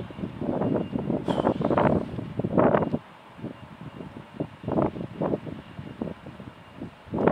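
A jet airliner's engines hum steadily.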